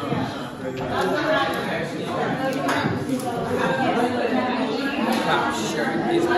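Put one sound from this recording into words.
Several young men talk with each other close by, casually and with animation.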